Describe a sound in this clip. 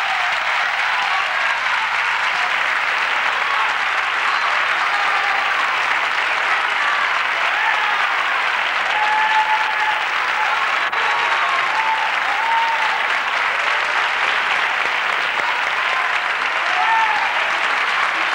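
People in a crowd cheer and whistle.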